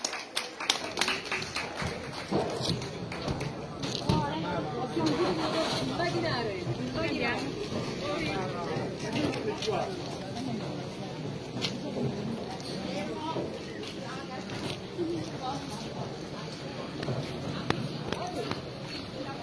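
A crowd of men and women talk and cheer nearby.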